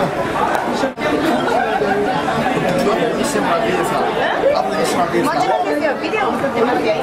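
Noodles sizzle on a hot griddle.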